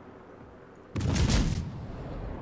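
Heavy naval guns fire with a loud boom.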